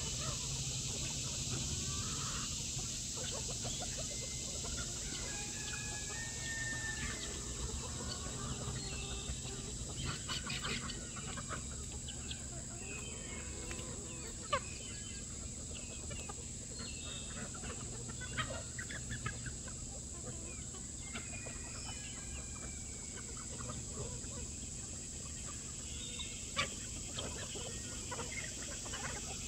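A flock of chickens clucks and squawks outdoors.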